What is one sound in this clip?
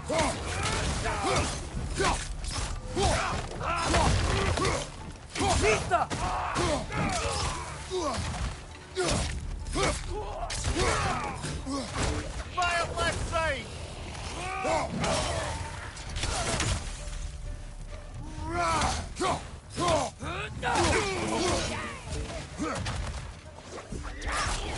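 Heavy blows and thuds land repeatedly in a fight.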